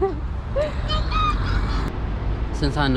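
A toddler babbles in a high voice.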